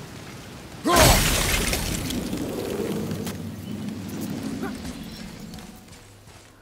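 A magical burst whooshes loudly and slowly fades.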